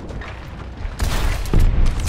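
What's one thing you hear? An explosion bursts loudly nearby.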